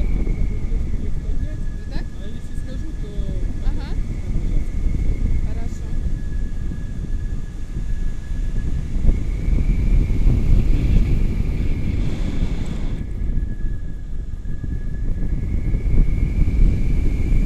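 A young woman speaks excitedly close by.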